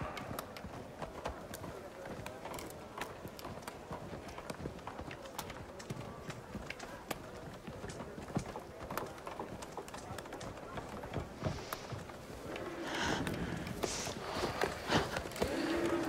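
A crowd murmurs and bustles in the distance outdoors.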